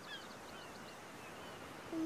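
Gentle waves wash onto a beach.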